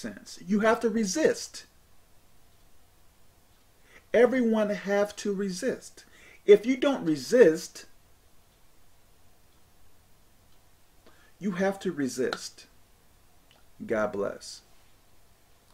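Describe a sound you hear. A man speaks calmly into a nearby microphone, in short phrases with pauses.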